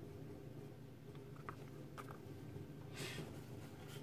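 A small cardboard box is set down on a paper-covered table with a soft tap.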